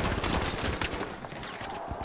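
Glass shatters.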